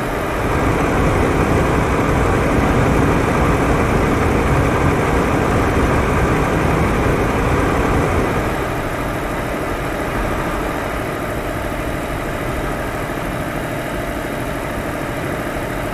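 A truck engine rumbles steadily, then eases off a little.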